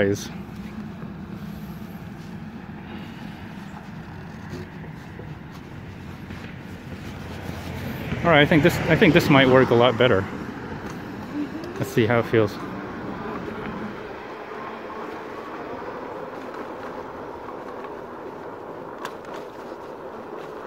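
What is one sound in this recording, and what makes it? A small electric motor hums steadily as wheels roll along a paved path.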